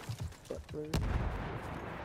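A rifle fires with a loud, sharp crack.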